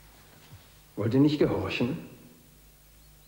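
A middle-aged man declares loudly in an echoing hall.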